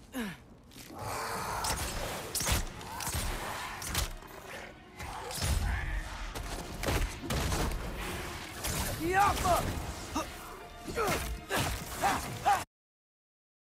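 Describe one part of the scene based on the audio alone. Heavy blows and impacts thud and crash in a fight.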